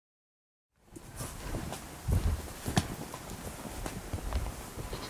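Footsteps crunch on soft ground.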